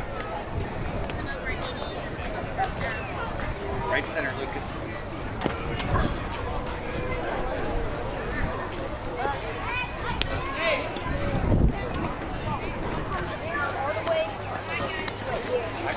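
Children and adults chatter and call out outdoors.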